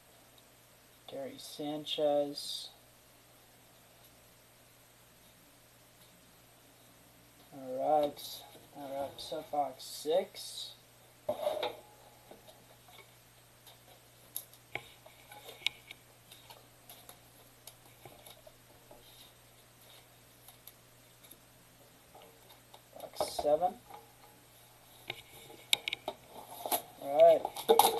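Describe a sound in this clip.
Trading cards rustle and slide as hands shuffle through them.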